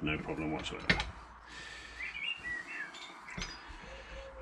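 Metal clinks against a vise.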